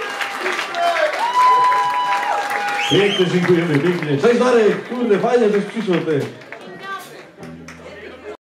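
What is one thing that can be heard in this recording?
A crowd of men and women claps.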